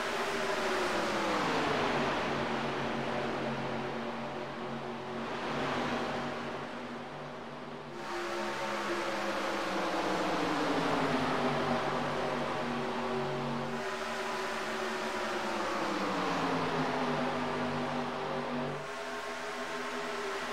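Race car engines roar loudly, their pitch sliding down as the cars pass.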